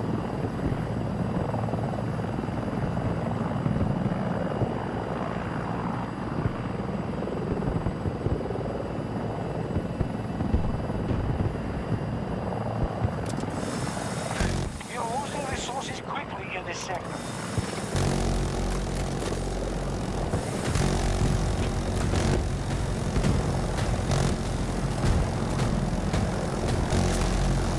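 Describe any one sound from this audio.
A helicopter's rotor thumps and drones steadily.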